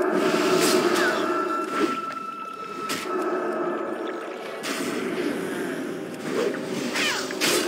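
Sharp hit sounds strike repeatedly.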